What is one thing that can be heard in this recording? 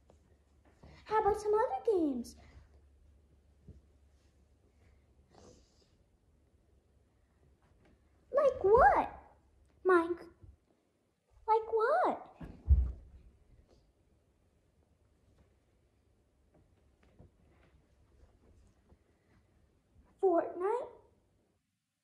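A young boy speaks loudly and with animation close by.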